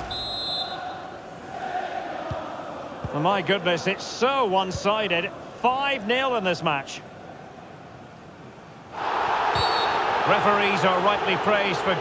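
A large stadium crowd roars and murmurs steadily, swelling louder near the end.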